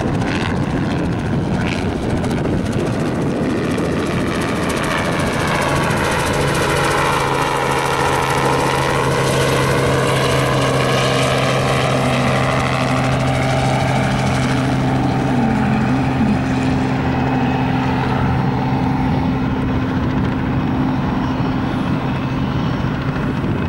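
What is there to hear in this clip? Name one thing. A helicopter's rotor thuds and its engine drones overhead, passing close and then fading into the distance.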